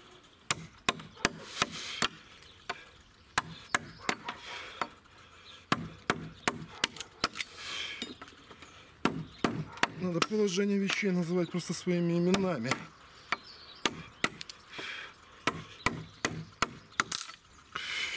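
A mallet knocks sharply on a chisel cutting into wood.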